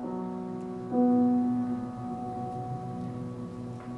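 A choir sings together.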